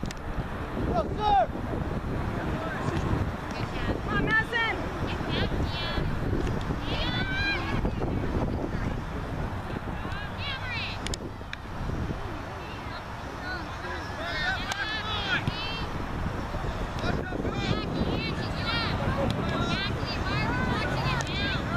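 Young girls call out to each other from across an open field outdoors.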